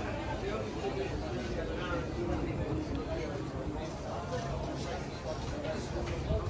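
Men and women chatter in low voices nearby.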